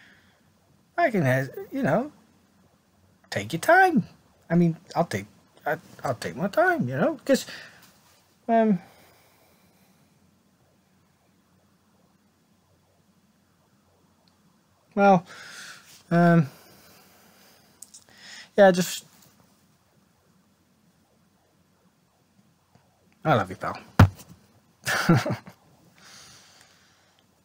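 A man talks calmly and close by, with pauses.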